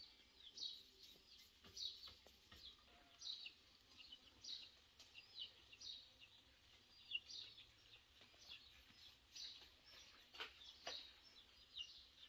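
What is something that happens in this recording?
A woman pats dough between her palms.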